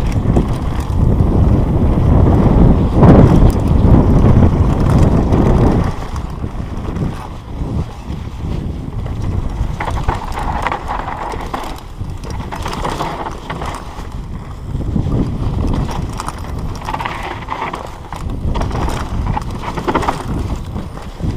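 Wind rushes loudly past a moving bike.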